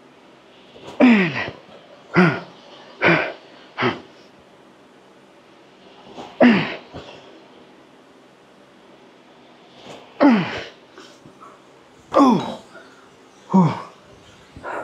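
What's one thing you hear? A man grunts with effort.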